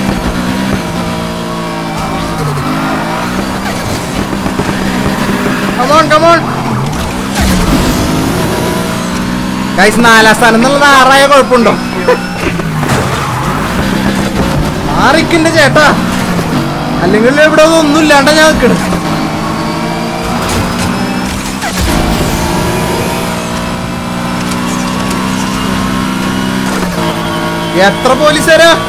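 A racing car engine roars at high speed, its pitch rising and dropping with each gear change.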